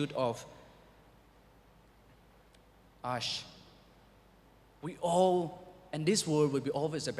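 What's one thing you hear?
A young man speaks calmly into a microphone, with pauses between phrases.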